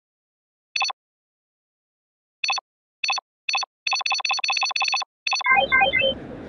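Short electronic beeps sound in quick bursts.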